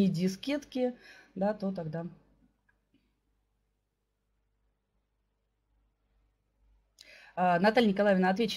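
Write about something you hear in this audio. A middle-aged woman speaks calmly through a microphone in an online call, pausing between phrases.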